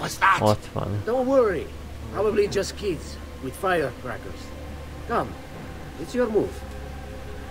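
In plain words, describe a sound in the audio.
An elderly man speaks calmly and warmly.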